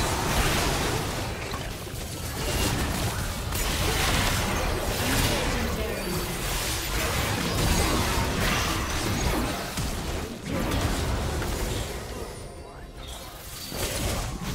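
Video game fight effects whoosh, clash and burst rapidly.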